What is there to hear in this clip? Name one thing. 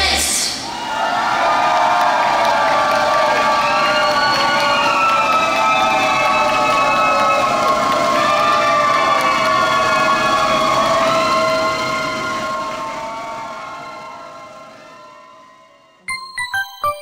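Loud pop music plays and slowly fades out.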